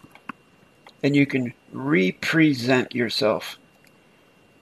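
A middle-aged man speaks calmly and close into a microphone.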